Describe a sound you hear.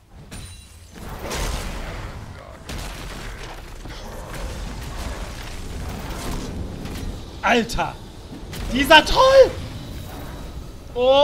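Game battle sounds whoosh and crash loudly.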